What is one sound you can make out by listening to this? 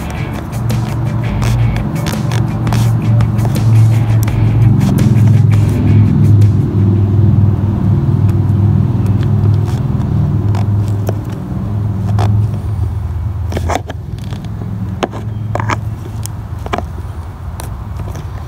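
Pliers click and scrape against a plastic clip.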